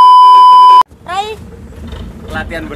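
A boy speaks close by.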